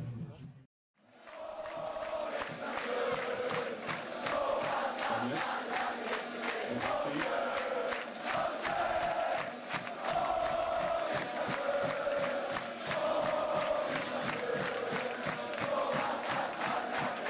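A large crowd chants and cheers loudly.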